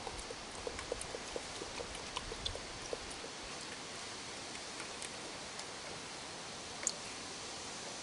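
A raccoon laps and splashes water in a bucket.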